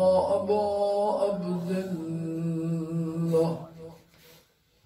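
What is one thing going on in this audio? An elderly man chants in a drawn-out mournful voice through a microphone.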